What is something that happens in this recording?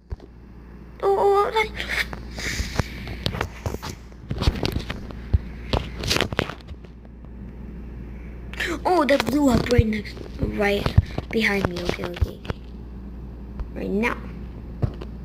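A boy talks with animation, close to a microphone.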